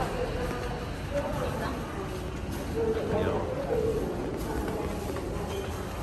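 Footsteps climb stone stairs.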